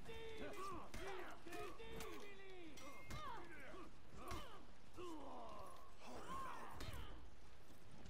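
Metal blades clash and clang in sharp strikes.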